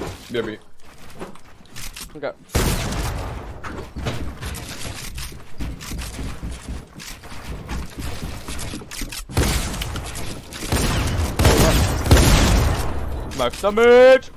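Video game building pieces clatter and thud in quick succession.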